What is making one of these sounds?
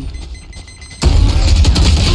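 An explosion bursts loudly.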